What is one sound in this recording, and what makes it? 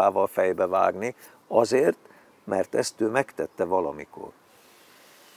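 An elderly man speaks calmly and close to the microphone.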